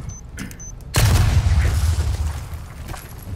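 An explosion bursts with a loud roar and rumble.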